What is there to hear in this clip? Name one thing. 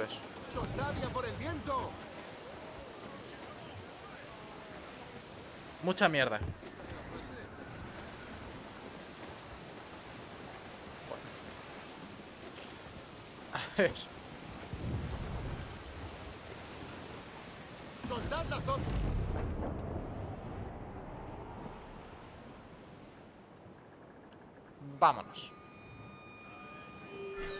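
A young man talks into a microphone in short, lively bursts.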